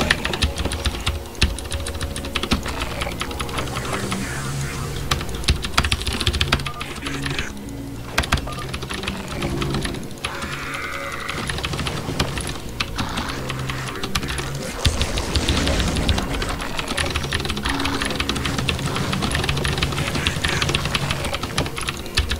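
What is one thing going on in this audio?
Keys and a mouse click rapidly and steadily, close by.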